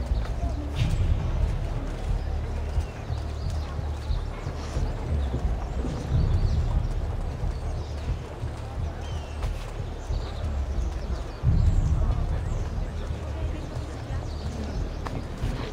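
Footsteps shuffle on stone as a group walks.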